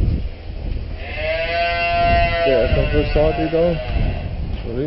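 Cattle moo loudly nearby.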